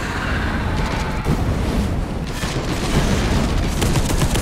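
A flamethrower roars in bursts.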